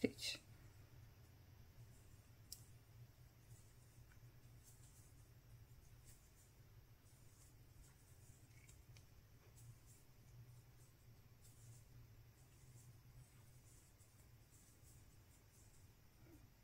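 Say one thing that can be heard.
A crochet hook and yarn rustle softly as stitches are worked.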